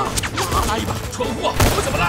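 A man shouts urgently close by.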